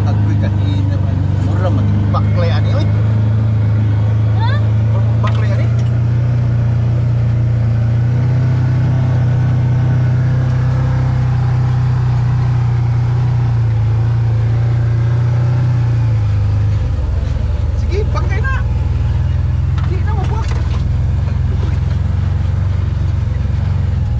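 An off-road vehicle's engine hums steadily and loudly while driving.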